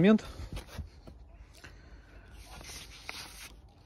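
Paper rustles in a hand.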